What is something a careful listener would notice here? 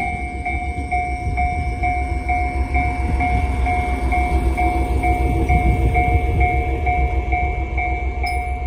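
A train rumbles slowly past at close range.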